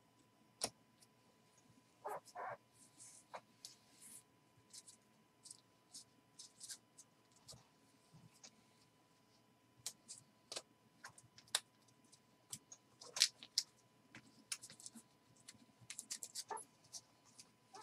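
Hands handle and shuffle trading cards with soft clicks and rustles.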